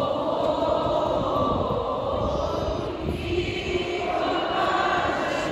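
A large crowd sings together outdoors.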